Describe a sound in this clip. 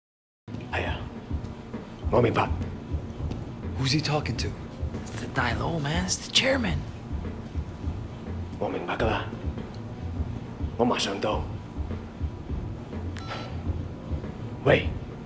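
A man talks calmly on a phone.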